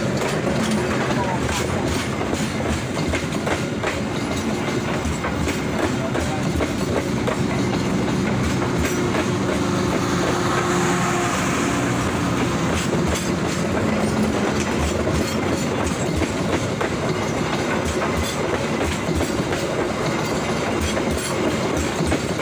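A passenger train rolls past close by.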